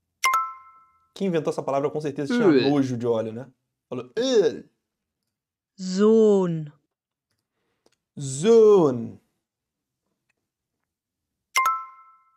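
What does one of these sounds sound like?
A short bright chime rings twice.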